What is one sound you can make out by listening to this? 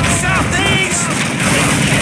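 Gunfire rattles nearby.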